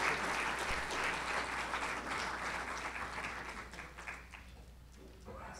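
An audience applauds and fades out.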